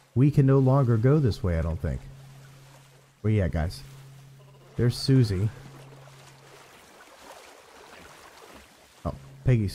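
Water laps and splashes softly around a swimmer.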